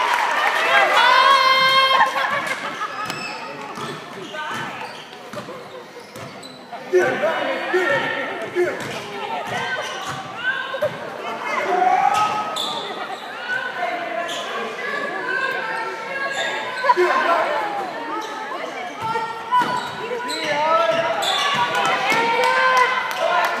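Basketball shoes squeak on a hardwood court in an echoing gym.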